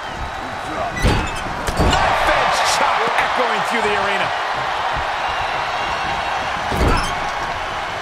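Heavy thuds of bodies slamming together ring out now and then.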